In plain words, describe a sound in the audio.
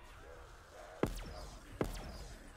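A gun fires two loud shots.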